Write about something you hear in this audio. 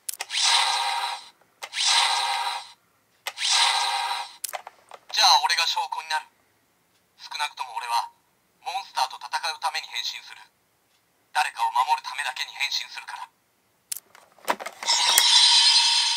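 A toy belt plays loud electronic sound effects through a small speaker.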